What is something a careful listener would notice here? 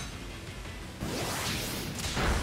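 A creature's attack hits with a loud rushing whoosh.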